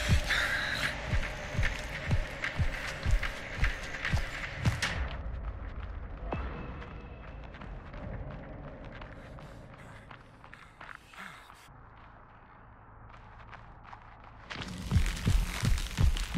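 Footsteps thud quickly on dirt as someone runs.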